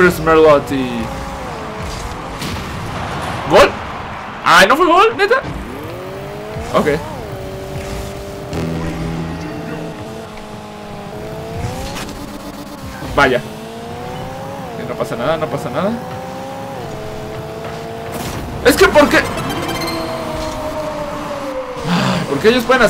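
Game cars' engines hum and rev steadily.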